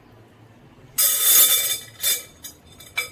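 Dry food pours and rattles into a glass bowl.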